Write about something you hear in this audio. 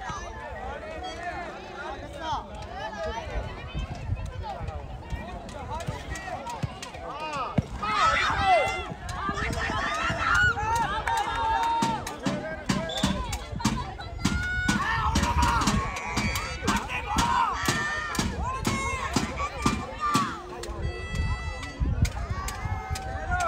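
A crowd of men and women chatter and shout outdoors.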